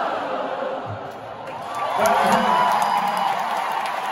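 A man close by claps his hands.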